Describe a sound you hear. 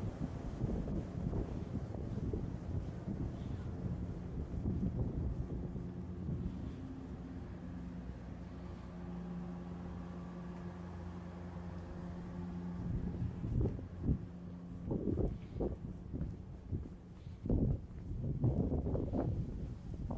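Wind buffets and rumbles outdoors in gusts.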